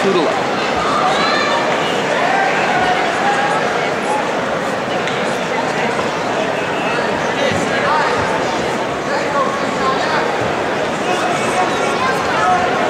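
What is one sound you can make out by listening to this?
A crowd of spectators talks and shouts.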